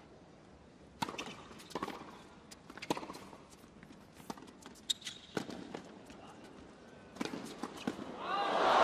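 A tennis ball is struck back and forth with sharp racket pops.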